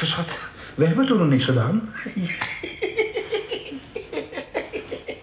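A man speaks through a small television speaker.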